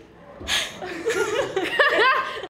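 Young girls laugh close to a microphone.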